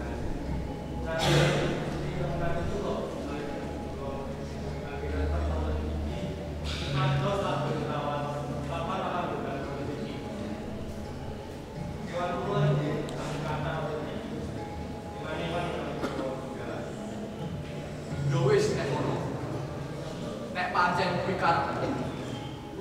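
A man speaks slowly through a loudspeaker, echoing in a large hall.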